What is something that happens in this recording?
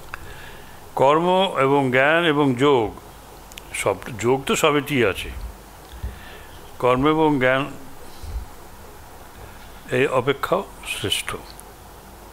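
An elderly man chants into a microphone in long, melodic phrases, with pauses between them.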